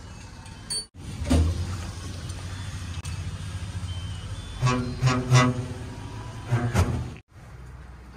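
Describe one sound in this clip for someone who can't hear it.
An air filter is knocked against metal with dull thuds.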